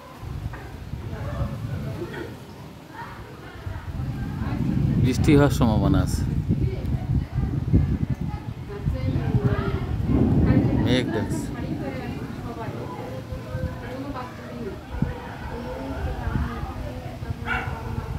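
Wind gusts loudly against the microphone outdoors.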